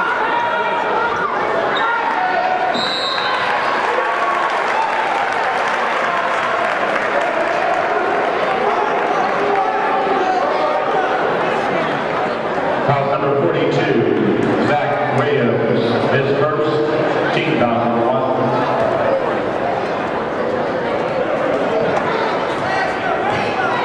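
A large crowd cheers and chants in an echoing gym.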